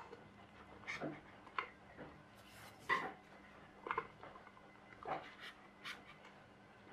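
Light plastic clicks and knocks sound as small parts are fitted onto a plastic bottle.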